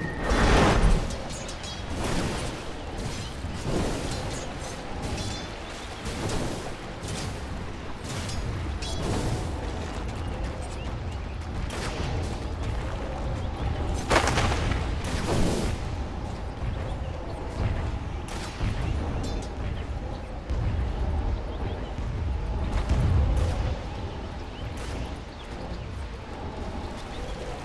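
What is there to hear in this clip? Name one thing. Game spell effects and weapon hits clash with sharp bursts and impacts.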